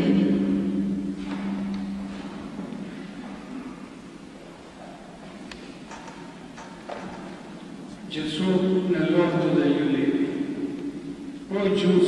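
A congregation of men and women sings together in a large echoing hall.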